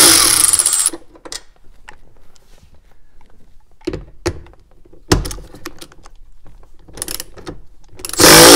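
Tools knock and click against plastic panels inside a car.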